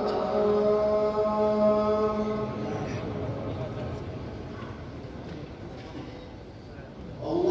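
A large crowd of men murmurs and chats in a wide, echoing space.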